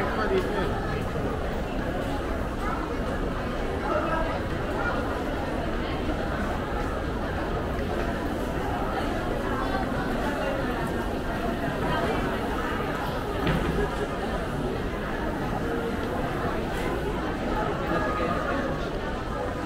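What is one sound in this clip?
A crowd chatters all around in a large echoing hall.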